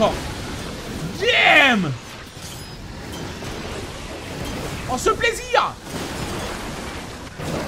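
A sword slashes through the air with a whoosh.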